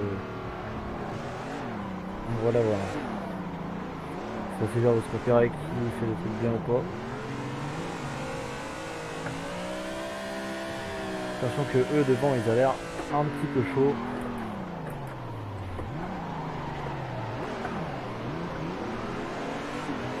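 A car engine revs up and down steadily throughout.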